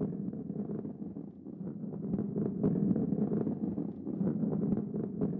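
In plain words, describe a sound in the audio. A ball rolls along a wooden track with a low, steady rumble.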